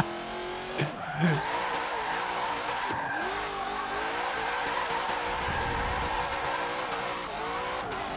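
Car tyres screech as the car slides.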